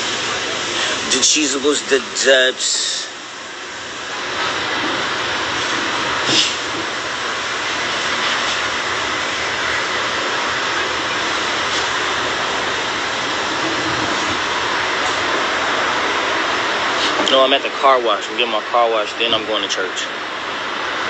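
A man speaks casually and close up.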